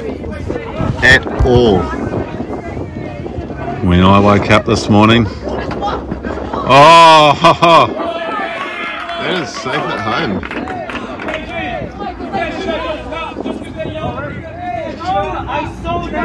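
Young players shout and chant loudly from nearby.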